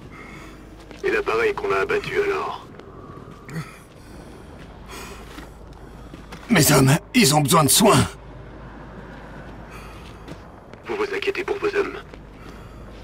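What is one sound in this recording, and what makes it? A man speaks calmly through a helmet radio.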